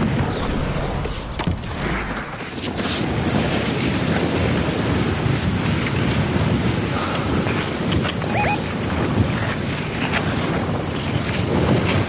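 A board slides and hisses over snow.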